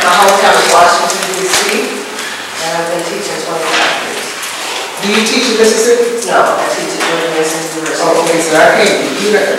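A middle-aged woman speaks steadily into a microphone in a room with a slight echo.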